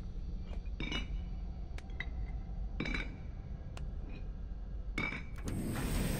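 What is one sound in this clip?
Stone blocks click and clunk into place one by one.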